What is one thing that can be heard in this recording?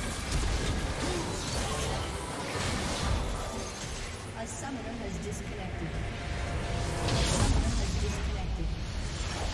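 Game spell effects and weapon hits crash and whoosh in quick bursts.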